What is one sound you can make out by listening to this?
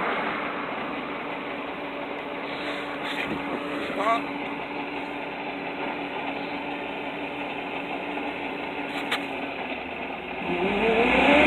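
A truck engine idles steadily a short way off.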